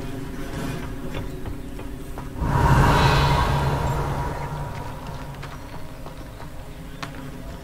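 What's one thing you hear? Footsteps crunch over loose stones.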